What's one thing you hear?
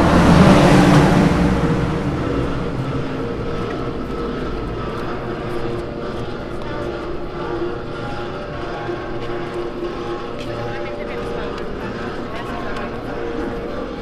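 Footsteps tap on a paved sidewalk outdoors.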